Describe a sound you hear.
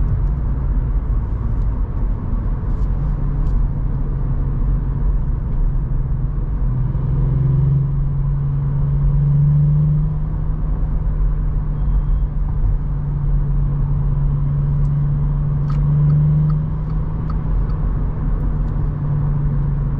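A car engine hums steadily from inside the cabin, rising and falling in pitch with speed.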